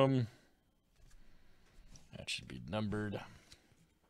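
A trading card slides and is set down on a mat with a soft tap.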